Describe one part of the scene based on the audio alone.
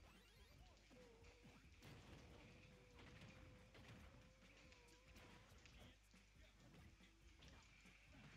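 Punches and kicks land with sharp thuds in a video game fight.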